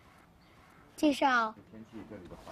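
A second young boy answers in a lively voice.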